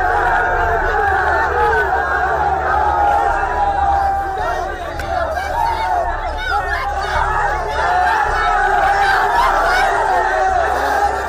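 A crowd of young men shouts and chants loudly outdoors.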